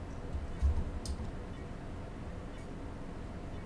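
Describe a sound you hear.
A screwdriver clicks against a metal box.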